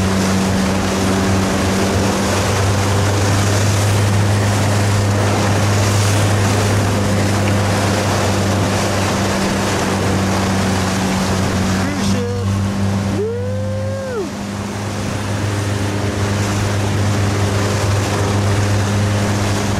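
Strong wind blows outdoors over open water.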